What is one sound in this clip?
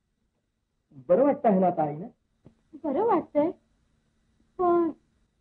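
A woman speaks sharply, close by.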